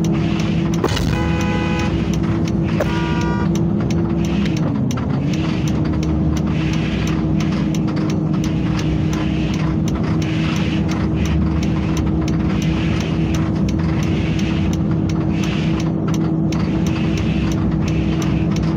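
A bus engine hums steadily, briefly dropping in pitch as it shifts gear.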